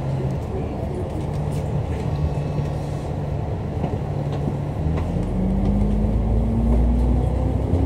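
Cars pass by on the road nearby.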